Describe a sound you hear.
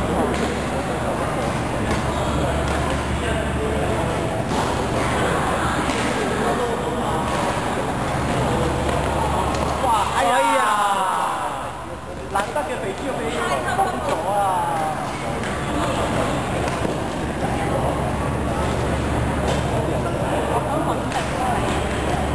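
Badminton rackets hit a shuttlecock with sharp pops.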